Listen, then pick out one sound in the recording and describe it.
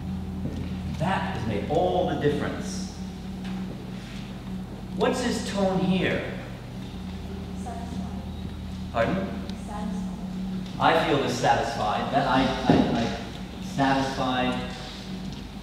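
A man speaks, addressing a room in a slightly echoing hall.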